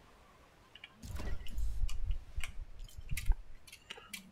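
Wooden pieces thud and clatter as they snap into place.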